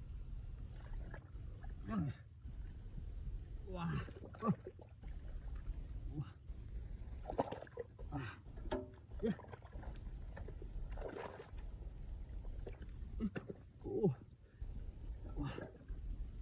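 Hands squelch and scrape in wet mud.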